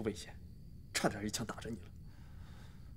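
A young woman speaks quietly and seriously.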